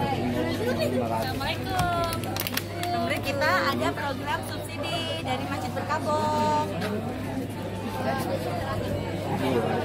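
Middle-aged women talk and laugh cheerfully close by.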